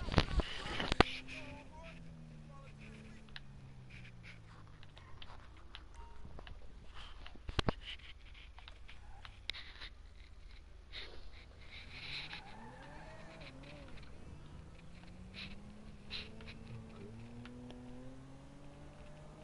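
A car engine hums and revs up and down.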